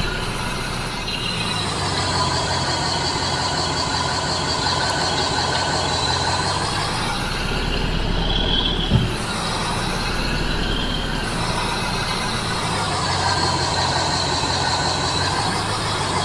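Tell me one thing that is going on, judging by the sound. A diesel truck engine rumbles steadily.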